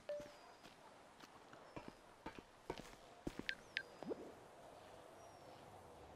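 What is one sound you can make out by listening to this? A phone beeps softly as buttons are pressed.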